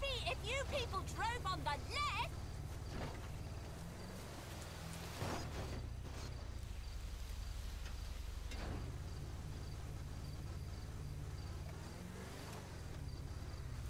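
Footsteps crunch on dry grass and dirt.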